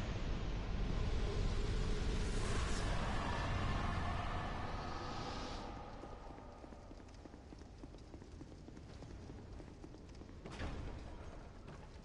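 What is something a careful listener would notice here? Armoured footsteps thud quickly on stone.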